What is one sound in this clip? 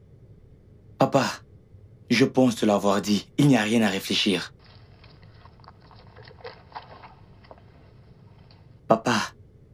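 A young man speaks calmly and clearly up close.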